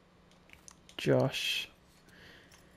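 A small metal tag jingles in a hand.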